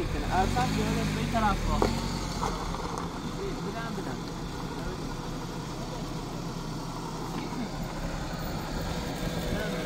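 Loose stones scrape and clatter under a man's hands.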